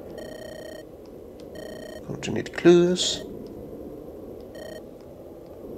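Electronic text blips beep in short steady bursts.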